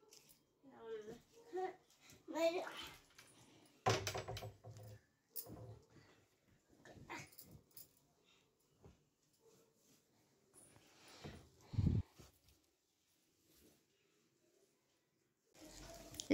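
Cloth rustles softly as clothes are folded.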